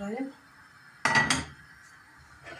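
A metal pan clanks down onto a stove.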